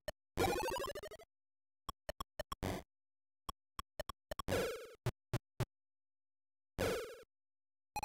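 Retro video game blips click in quick succession.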